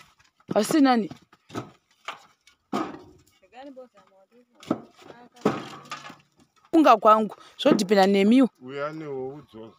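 Clay bricks clunk as they are stacked.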